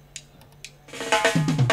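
A live band bursts into loud music.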